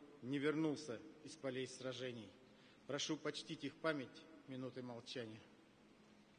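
An elderly man speaks solemnly through a microphone in a large echoing hall.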